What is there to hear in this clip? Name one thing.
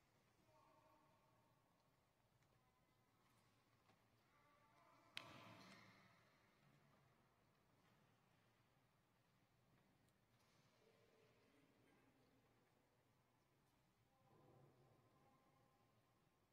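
A man speaks softly at a distance in a large echoing hall.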